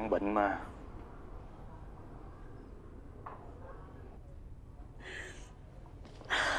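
A young woman sobs and whimpers close by.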